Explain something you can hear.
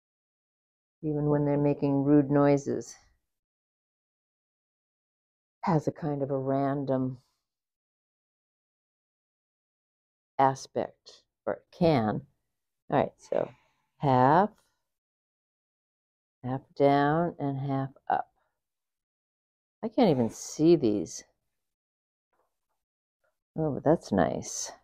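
An older woman speaks calmly in short phrases, close through a clip-on microphone.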